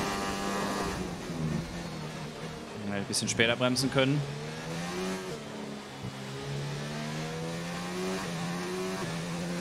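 A racing car engine drops in pitch as the car brakes and downshifts, then revs up again.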